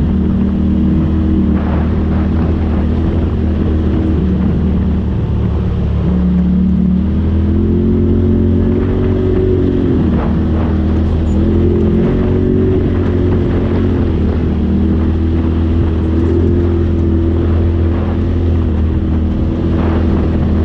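An off-road vehicle's engine drones steadily, rising and falling in pitch.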